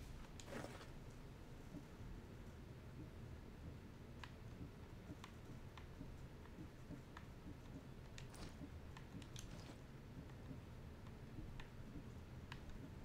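Short menu clicks tick each time a selection changes.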